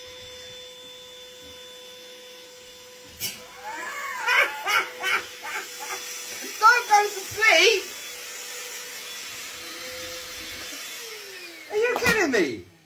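A handheld vacuum cleaner whirs steadily close by.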